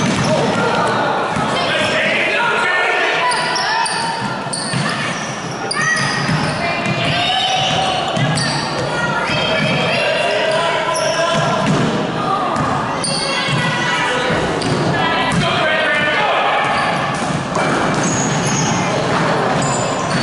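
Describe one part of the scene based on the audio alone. Children's voices shout and cheer throughout a large echoing gym.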